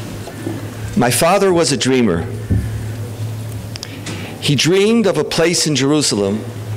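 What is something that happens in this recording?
A middle-aged man speaks calmly into a microphone.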